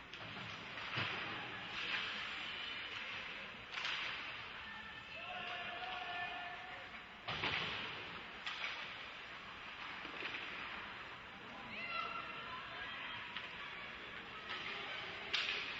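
Hockey sticks clack against the puck and each other.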